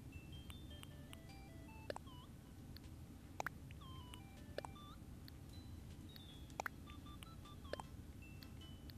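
Short electronic blips chime quickly one after another as a game menu cursor moves.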